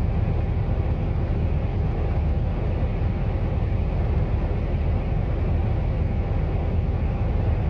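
A vehicle's engine rumbles steadily as it drives along a road.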